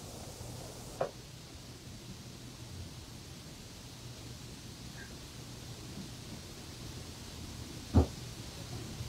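A young owl snaps its beak shut on food with sharp clicks.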